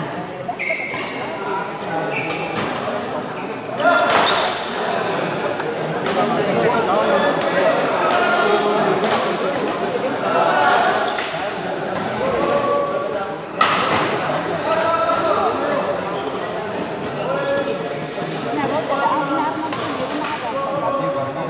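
Shuttlecocks are struck with rackets in a sharp, repeated pop.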